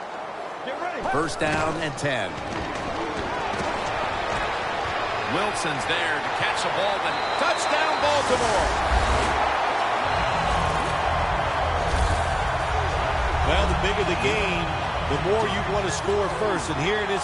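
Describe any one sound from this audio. A large stadium crowd murmurs, then roars and cheers loudly.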